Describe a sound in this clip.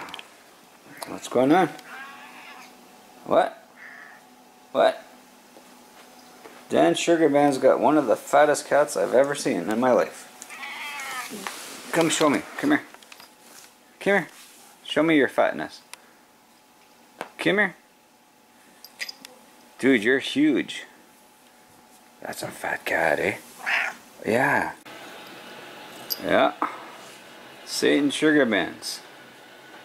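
A cat meows repeatedly, close by.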